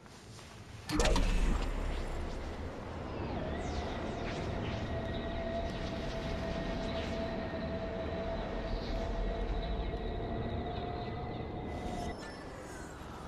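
A spaceship roars steadily as it flies.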